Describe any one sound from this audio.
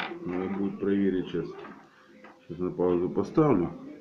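Small metal pieces clink on a wooden table.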